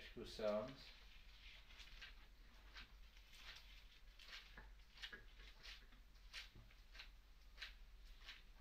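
Paper rustles and flaps softly.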